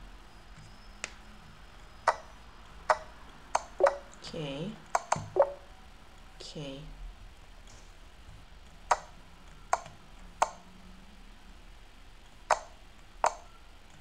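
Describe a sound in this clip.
Short sharp clicks sound as pieces are moved in a game.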